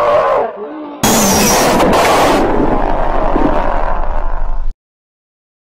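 A woman shrieks in terror.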